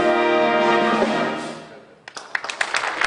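A concert band plays a final sustained chord in a large hall.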